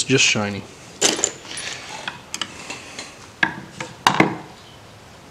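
Small metal parts clink against a carburetor body.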